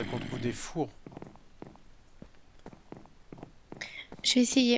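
Footsteps thud steadily on wooden boards.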